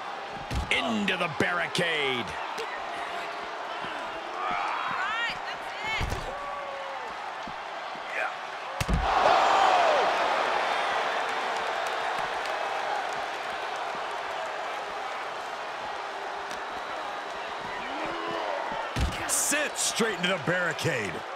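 A crowd cheers and roars loudly in a large arena.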